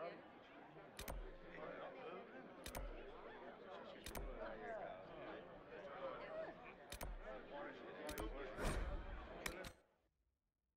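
A game menu clicks sharply as options are selected.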